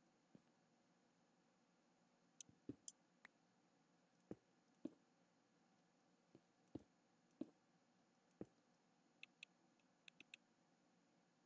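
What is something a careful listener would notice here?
Stone blocks click softly as they are placed one after another.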